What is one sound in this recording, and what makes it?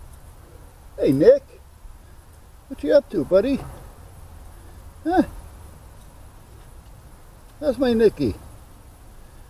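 Dogs bark loudly outdoors.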